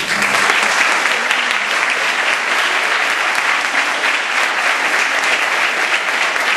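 A large audience applauds loudly in a hall.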